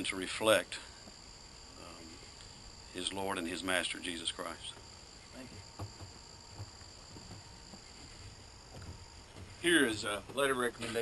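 A man speaks into a microphone in short bursts.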